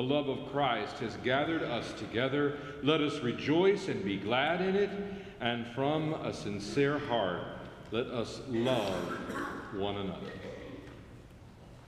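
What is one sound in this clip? A choir of young women sings together in a large echoing hall.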